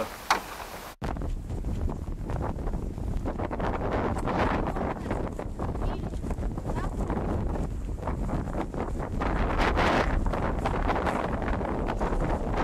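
Wind blows loudly outdoors with a low rumble.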